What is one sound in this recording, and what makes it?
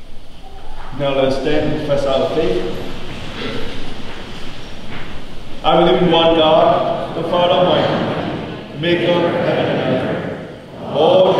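A man recites steadily through a microphone in an echoing hall.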